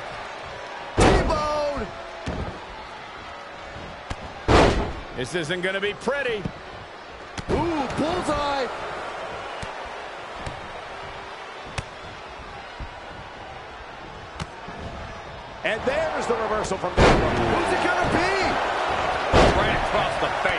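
Heavy thuds of bodies slamming onto the ring mat ring out now and then.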